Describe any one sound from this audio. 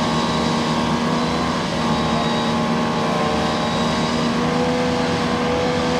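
Wet mud splashes and sloshes under spinning tyres.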